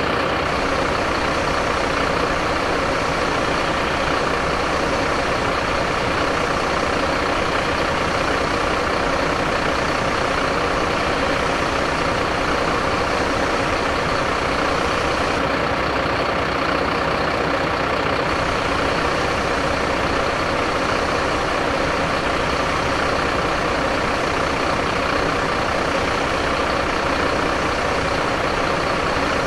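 Water hisses from a fire hose.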